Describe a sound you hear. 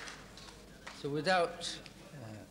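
A man speaks up briefly.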